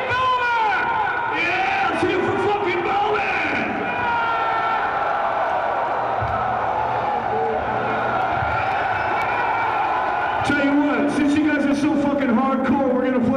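A large crowd cheers and roars loudly in a big hall.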